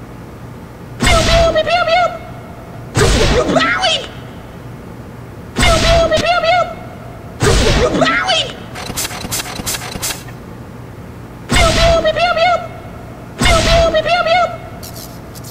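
A gun fires single loud shots, one every two seconds or so, echoing in a large hall.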